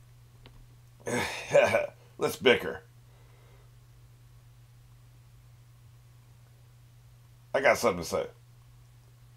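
A middle-aged man speaks in short bursts close to a microphone.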